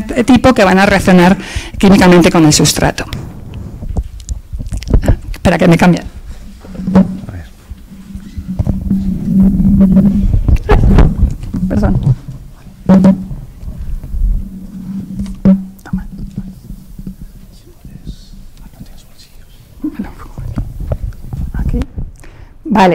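A woman speaks calmly into a handheld microphone.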